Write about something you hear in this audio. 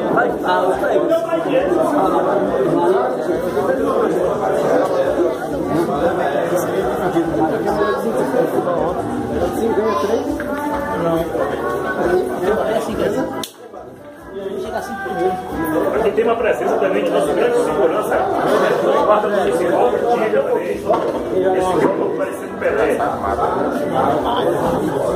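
A crowd of young men talks and shouts over one another in an echoing room.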